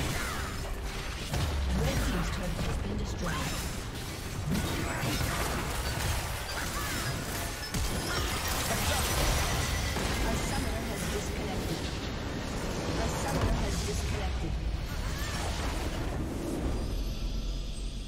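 Game spell effects and attacks crackle and blast in rapid bursts.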